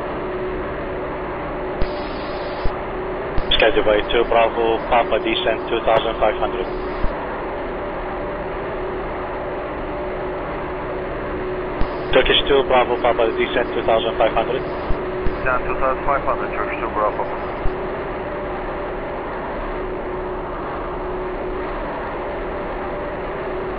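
A jet airliner's engines roar steadily.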